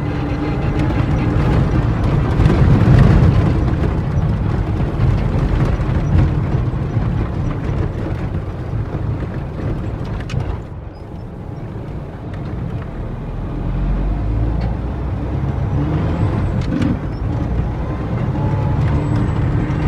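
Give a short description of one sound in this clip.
A vehicle engine rumbles steadily.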